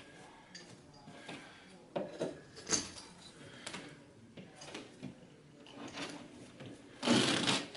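A tool scrapes and knocks against a wooden baseboard close by.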